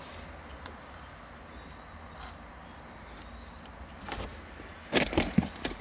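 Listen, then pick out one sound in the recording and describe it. Small plastic wire connectors click and rattle together in a hand.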